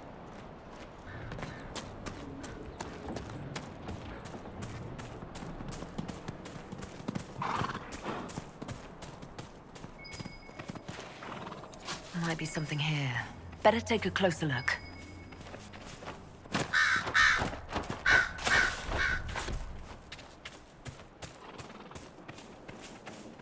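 Quick footsteps run steadily through grass.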